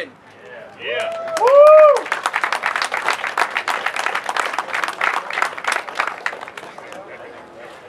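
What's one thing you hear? A small crowd claps and cheers outdoors.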